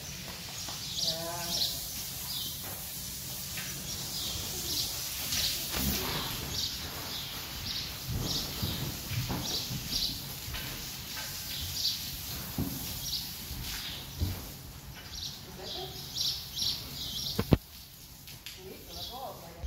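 Water sprays from a hose onto a horse's coat.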